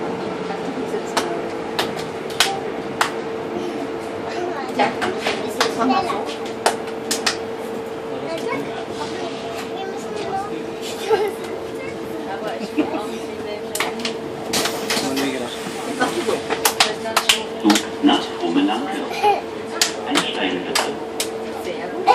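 Children clap their hands in a rhythm.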